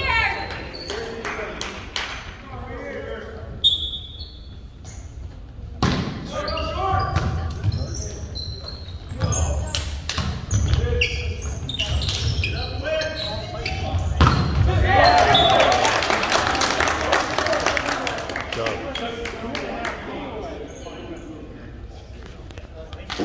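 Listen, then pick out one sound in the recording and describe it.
Young men shout and call out during play in an echoing gym.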